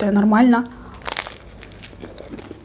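A young woman bites into crunchy toasted bread.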